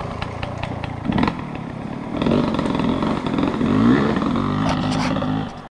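Tyres crunch over rocks and dirt.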